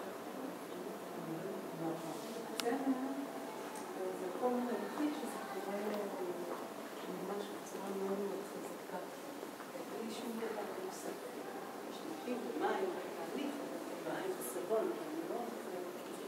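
Women talk quietly nearby in an echoing room.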